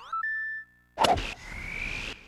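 A golf ball is struck with a sharp crack.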